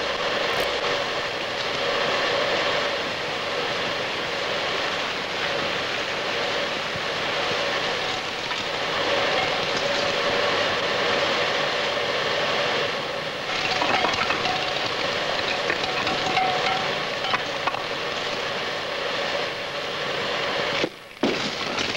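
Steam hisses loudly and steadily.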